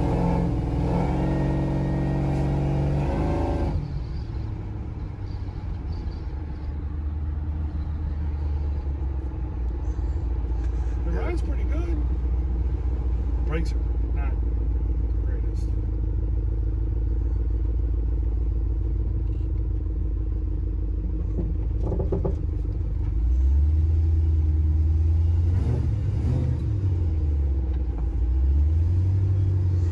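A car engine rumbles steadily and revs up and down.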